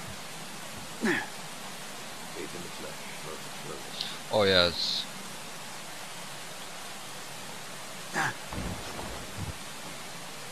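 A young man speaks briefly and casually through a headset microphone.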